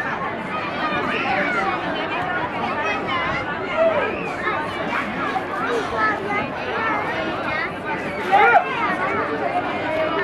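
A crowd of men, women and children chatter nearby outdoors.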